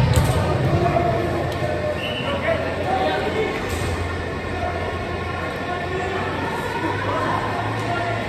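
Several men call out to one another across a large echoing hall.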